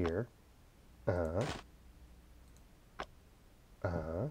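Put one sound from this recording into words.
Apples knock softly onto a wooden counter.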